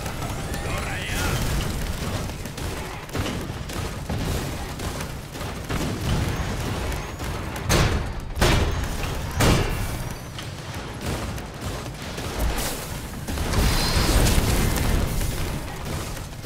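Explosions burst with loud booms.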